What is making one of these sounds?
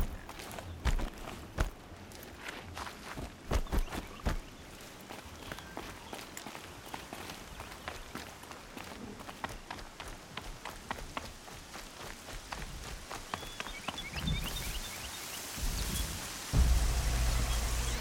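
Quick footsteps patter over rock and grass.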